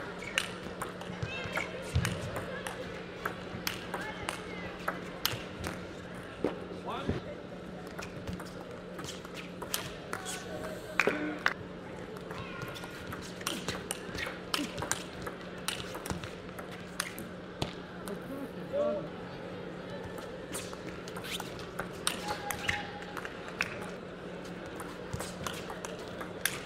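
Sneakers squeak on the floor as players shift.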